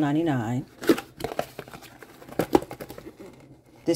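A cardboard box flap is opened and scrapes.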